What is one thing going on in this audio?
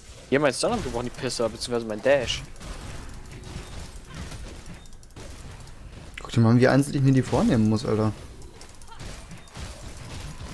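Fiery magic blasts crackle and boom in a fight.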